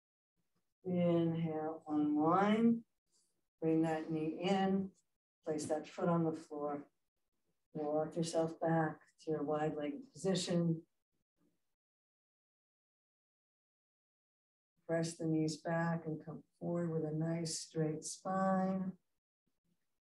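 A middle-aged woman speaks calmly and instructively, close by.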